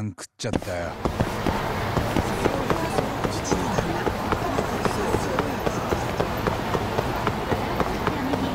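Running footsteps slap quickly on pavement.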